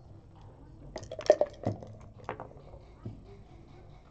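Dice rattle and tumble across a board.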